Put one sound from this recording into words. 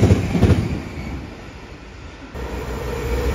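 An electric multiple-unit train rolls past on the rails.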